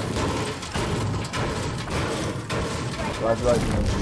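A pickaxe strikes metal with repeated clangs.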